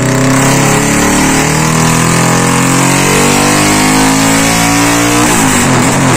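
A motorcycle engine roars loudly, revving steadily higher and then suddenly dropping off.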